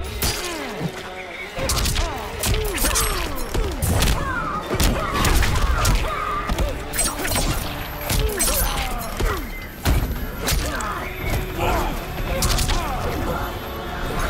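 Electric energy crackles and zaps.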